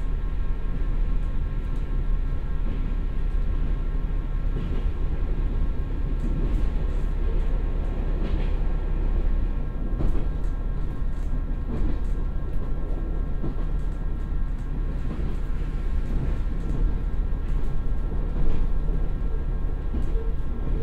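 A diesel train engine rumbles steadily.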